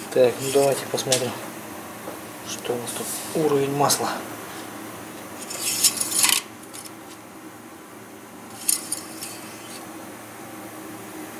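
A cloth rubs and squeaks along a metal dipstick.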